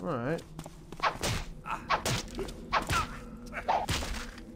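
A sword swishes through the air in repeated swings.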